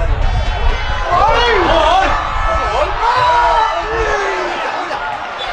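Young players shout to each other across an open pitch.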